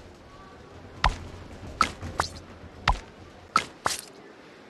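Short bright interface chimes ring out as menu buttons are tapped.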